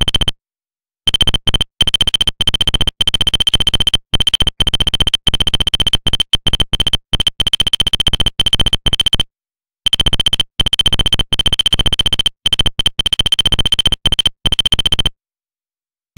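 Rapid electronic beeps chatter in quick bursts as text prints out.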